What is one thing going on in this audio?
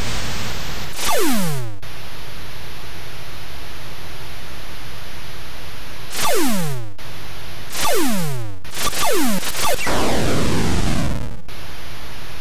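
Laser shots zap with a quick falling whine, several times.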